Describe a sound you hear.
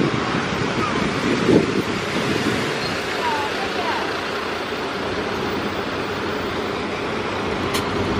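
Tyres hiss on the road as a bus drives off.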